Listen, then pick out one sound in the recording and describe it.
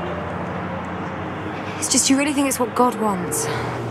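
A second young woman talks with animation, close by.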